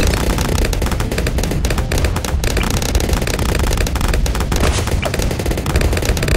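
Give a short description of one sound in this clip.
Game towers fire rapid popping shots.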